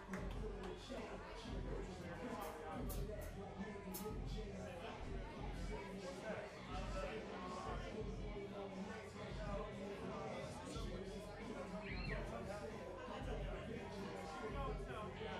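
A rock band plays loudly.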